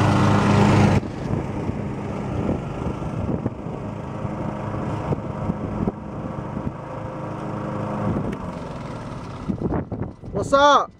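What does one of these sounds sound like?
A riding lawn mower engine drones nearby.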